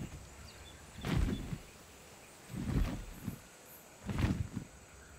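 Large wings flap with heavy whooshing beats.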